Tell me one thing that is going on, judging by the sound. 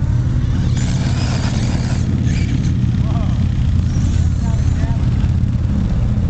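A small electric toy car motor whines as it races over dirt.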